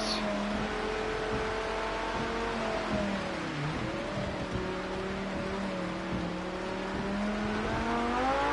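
A racing car engine drones steadily, dipping and rising in pitch as it shifts and accelerates.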